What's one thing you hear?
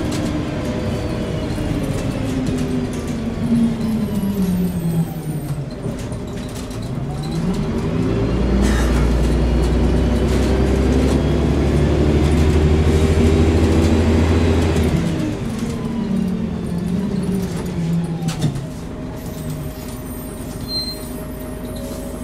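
A bus rattles and shakes as it drives.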